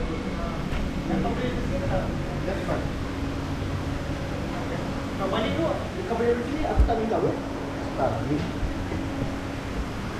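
Men talk casually nearby indoors.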